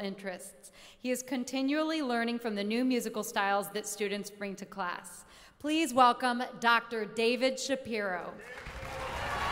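A young woman sings with vibrato into a microphone in a large echoing hall.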